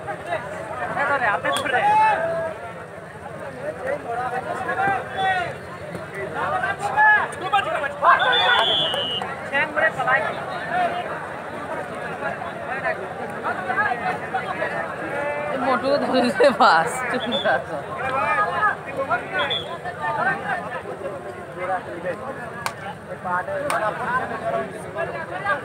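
A crowd of men shouts and chatters loudly outdoors.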